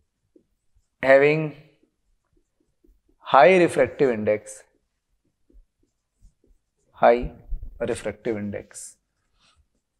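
A man speaks clearly and calmly into a close microphone, in short bursts.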